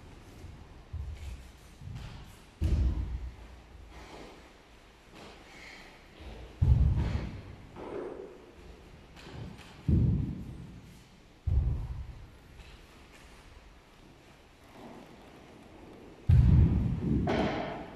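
Bodies thud heavily onto a padded mat.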